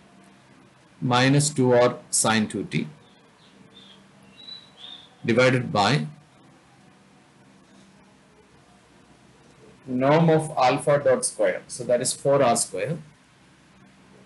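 A man explains calmly, close to a microphone, with pauses between phrases.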